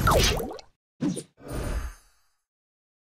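A cartoon explosion pops with a puff.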